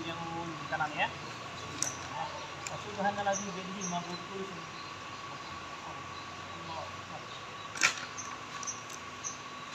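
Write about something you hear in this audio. Paper rustles and crinkles in hands.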